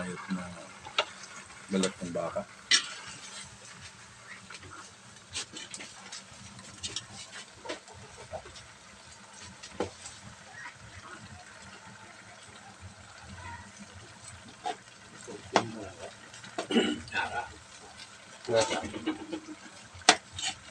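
A metal spatula scrapes and clinks against a wok while stirring food.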